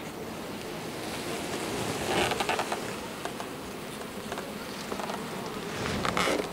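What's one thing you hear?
Bees buzz around an opened hive.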